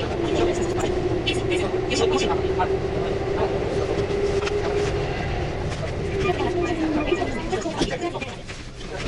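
A train's motor whines steadily, then drops in pitch as it slows to a stop.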